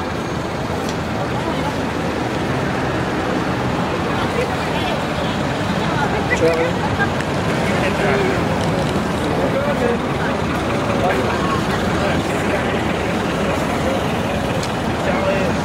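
A crowd murmurs outdoors at a distance.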